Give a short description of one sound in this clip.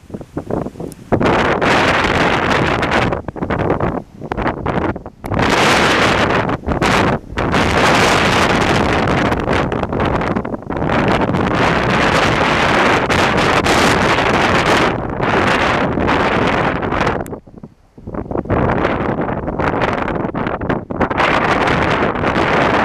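Strong wind gusts buffet the microphone outdoors.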